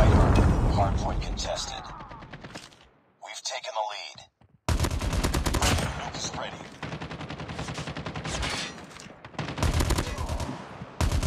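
Gunshots ring out from a sniper rifle, each with a booming echo.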